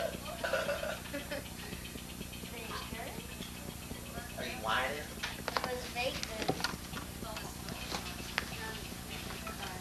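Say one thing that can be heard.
A woman talks softly to a baby nearby.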